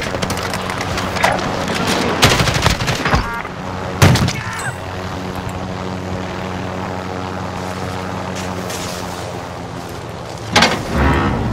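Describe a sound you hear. A helicopter engine drones steadily with a low hum.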